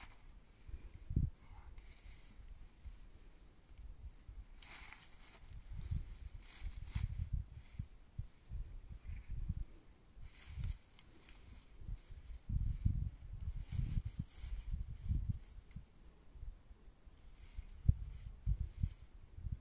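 Hands rustle dry wheat stalks.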